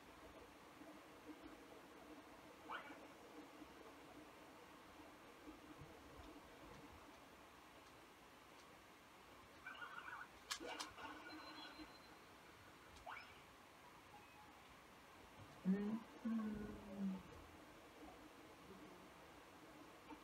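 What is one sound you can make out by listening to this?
Video game sound effects beep and chime from a television speaker.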